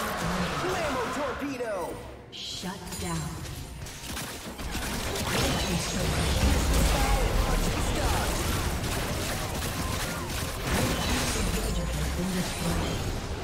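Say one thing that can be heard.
Fantasy battle effects crash, zap and burst in a busy fight.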